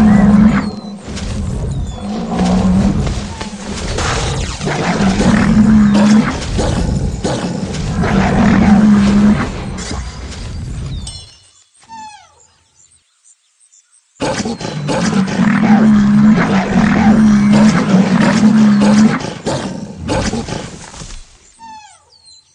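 Claws slash and thud with heavy blows.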